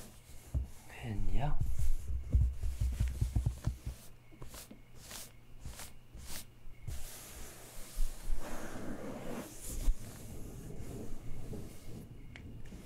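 Hands rub and tap softly on book pages, close up.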